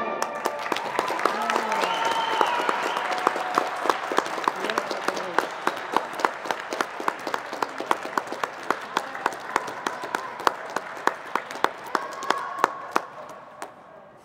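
A crowd claps in a steady rhythm, echoing in a large hall.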